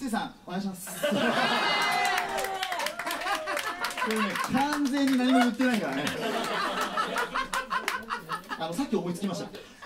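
A young man talks and laughs into a microphone with animation.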